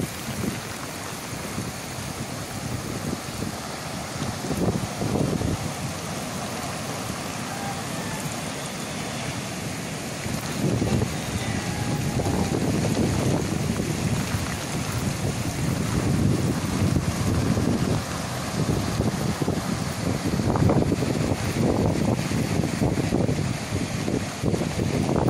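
Rough sea waves crash and wash onto the shore.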